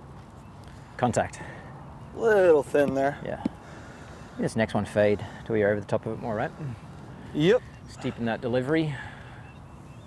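A young man speaks calmly nearby, outdoors.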